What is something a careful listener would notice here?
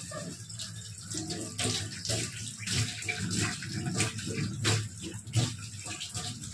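Hands splash and rub in water in a sink.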